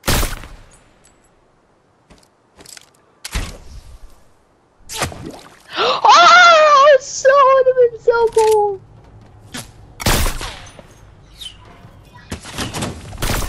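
A rifle fires sharp, loud shots now and then.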